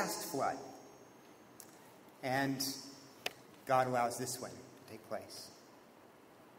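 A man speaks calmly through a microphone in an echoing room, with pauses.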